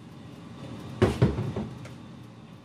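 A metal amplifier chassis knocks against a cabinet as it slides in.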